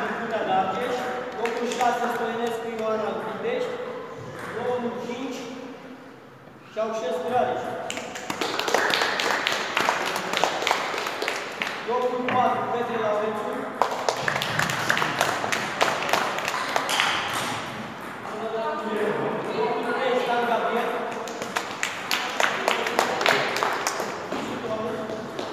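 A middle-aged man speaks loudly in an echoing hall, announcing.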